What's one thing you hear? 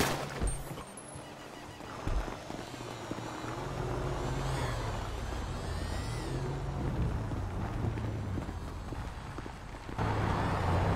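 A scooter engine idles and then revs as the scooter pulls away.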